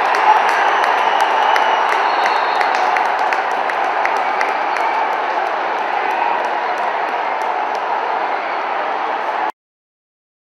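A large stadium crowd cheers a goal.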